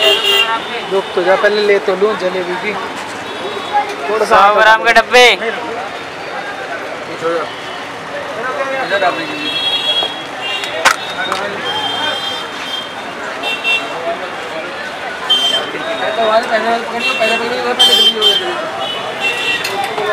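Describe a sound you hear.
Street traffic and crowd noise fill the air outdoors.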